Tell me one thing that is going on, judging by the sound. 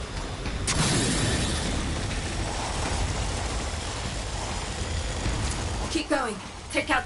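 Jet thrusters roar steadily as something flies at speed.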